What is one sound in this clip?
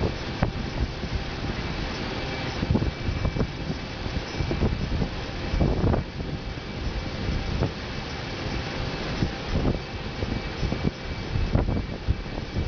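An aircraft's wheels thump and rumble over a runway.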